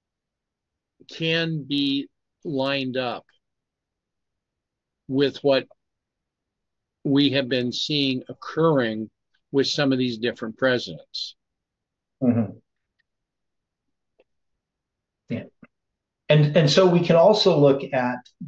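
An elderly man speaks slowly and thoughtfully into a microphone, with long pauses.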